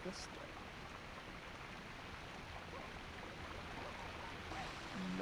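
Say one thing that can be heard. Light footsteps patter softly.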